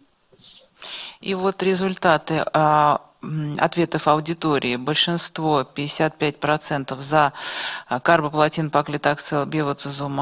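An older woman speaks steadily into a microphone over an online call.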